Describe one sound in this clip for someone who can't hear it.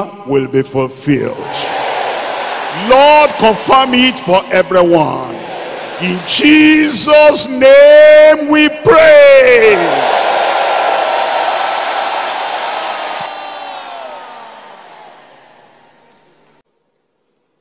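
A large crowd shouts and cries out in prayer, echoing in a big hall.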